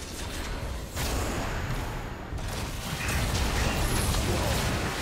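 Game combat sound effects clash and boom.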